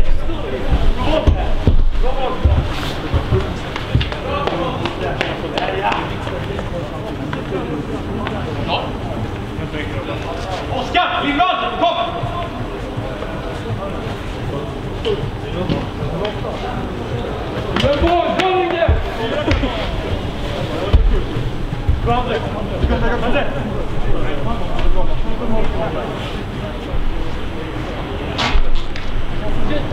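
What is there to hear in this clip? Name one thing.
Distant players shout to each other across a large open stadium.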